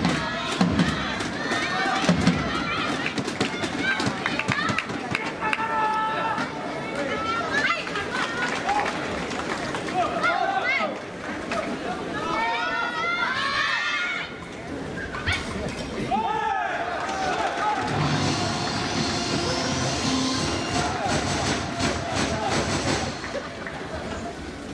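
Spectators beat cheering sticks together in a rapid clatter.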